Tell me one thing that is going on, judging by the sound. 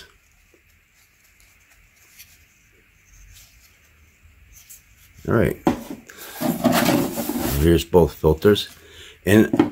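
Hands turn a paper filter, rustling it softly.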